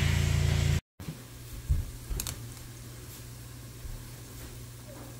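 Hot oil sizzles and bubbles in a fryer.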